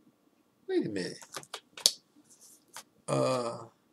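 A plastic package crinkles in a man's hands.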